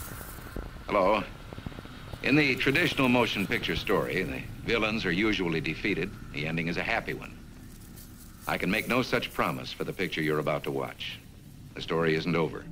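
A middle-aged man speaks calmly and steadily to the listener, heard through an old, hissy recording.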